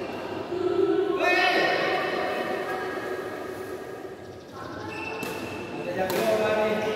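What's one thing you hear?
Sneakers squeak sharply on a hard court floor in a large echoing hall.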